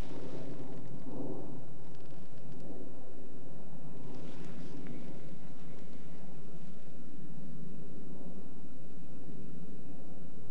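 A fishing reel clicks and whirs as the line is wound in.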